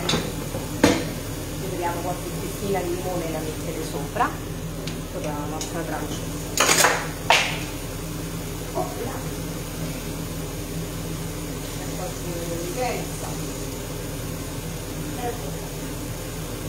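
Food sizzles softly in a covered pan.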